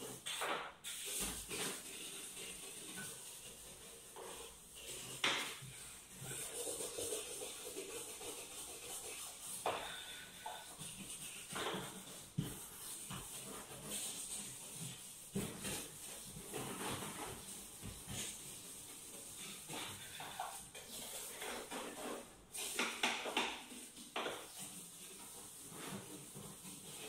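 A cloth rubs and wipes against cabinet doors.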